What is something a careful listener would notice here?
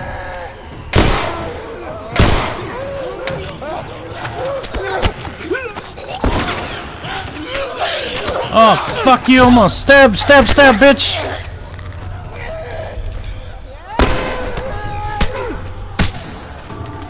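Gunshots ring out sharply.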